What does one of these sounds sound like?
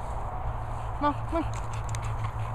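A dog barks twice nearby.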